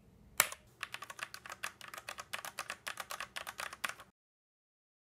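Fingers type quickly on a keyboard with a rapid clatter.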